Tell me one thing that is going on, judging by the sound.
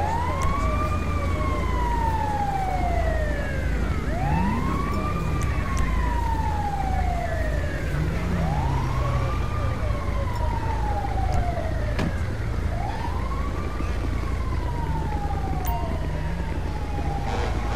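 A siren wails in slow, repeating sweeps close by.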